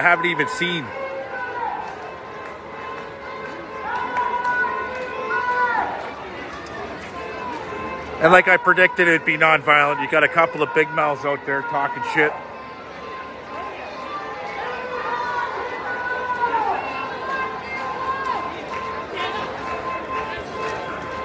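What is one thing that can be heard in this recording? A large crowd chants and shouts outdoors.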